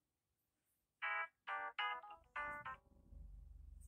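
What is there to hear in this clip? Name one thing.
A phone plays a short melodic chime tune.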